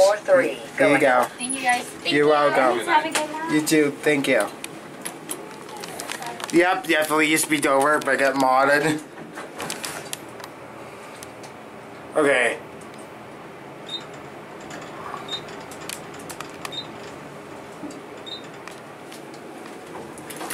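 Elevator buttons click as they are pressed.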